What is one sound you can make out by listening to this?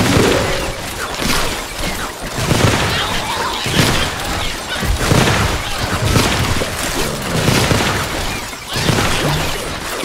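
Icy blasts and bursts crackle as zombies are hit.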